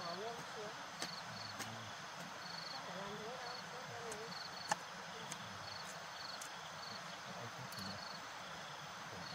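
A hoe thuds into soft soil.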